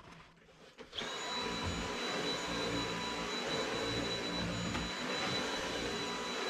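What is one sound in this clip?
A cordless vacuum cleaner hums steadily.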